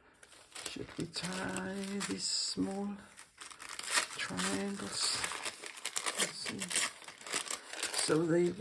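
Thin tissue paper rustles and crackles as it is handled.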